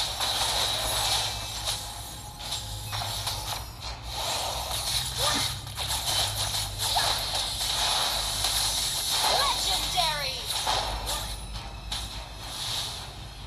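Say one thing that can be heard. Magic blasts and crackles burst again and again in a fast game battle.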